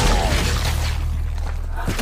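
A woman exclaims loudly in surprise.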